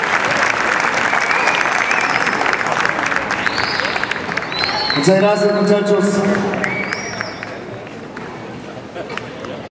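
An audience claps and cheers loudly, then the applause slowly fades.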